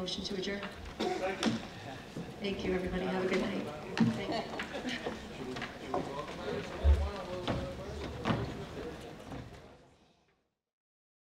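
People murmur and chatter in a large echoing room.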